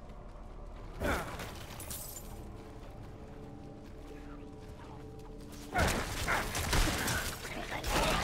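Game combat sounds clash and burst in loud bursts.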